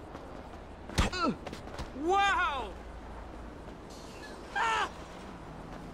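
A man shouts and groans.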